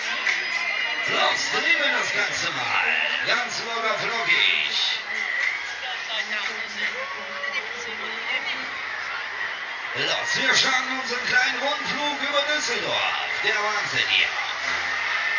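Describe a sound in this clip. Riders scream and shriek on a fairground ride.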